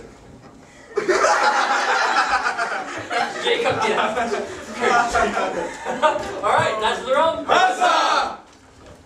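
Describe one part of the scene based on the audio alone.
Young men shout and call out with animation.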